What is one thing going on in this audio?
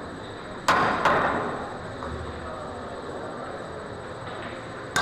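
Pool balls knock together and roll across the table.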